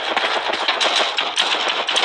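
A rifle fires a burst of rapid shots.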